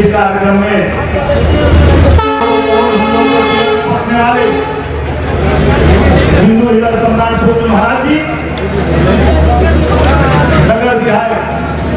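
A man speaks loudly into a microphone over a loudspeaker.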